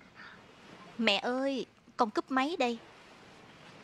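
A young girl's voice rings out loudly nearby.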